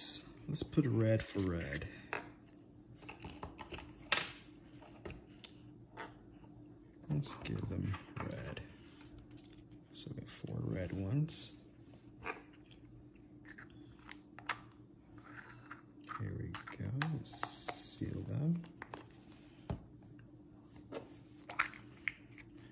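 A plastic egg snaps and clicks as it is opened and closed.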